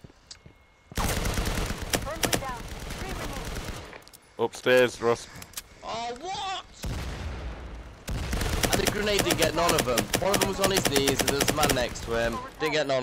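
A gun fires in rapid, loud bursts.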